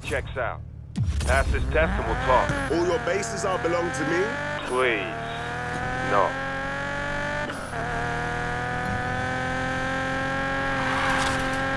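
A car engine roars and revs higher as the car speeds up.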